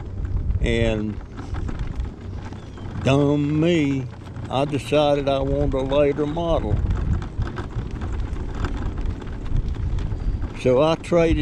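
Small tyres roll over rough asphalt.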